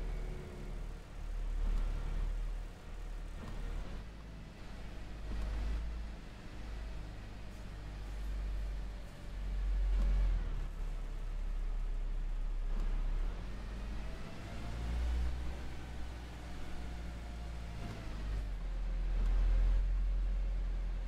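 A bus engine hums low and steady as the bus drives along.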